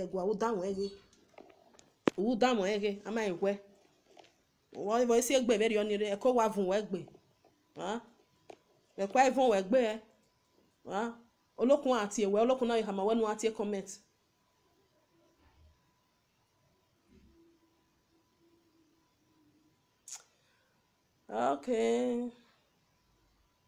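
A young woman speaks with animation, close to the microphone, pausing between phrases.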